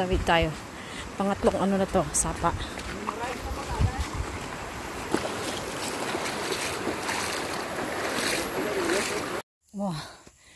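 A stream of shallow water rushes and splashes over stones.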